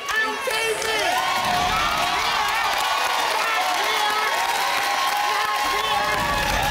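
A studio audience claps rapidly.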